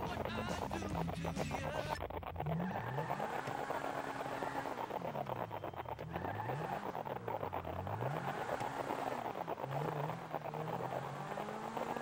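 A sports car engine revs up and down through the gears.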